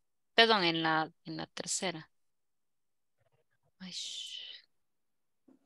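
A man speaks clearly through an online call.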